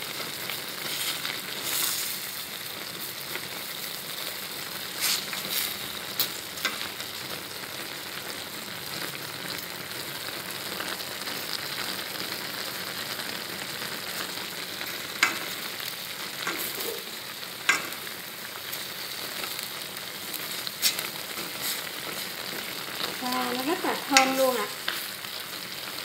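Wooden chopsticks click and tap against a metal pot.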